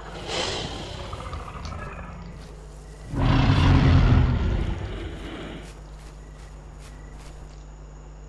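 A vehicle engine rumbles low and steadily, roaring louder for a few seconds.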